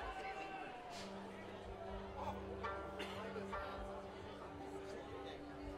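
Musicians pick out steady notes on stringed instruments through loudspeakers.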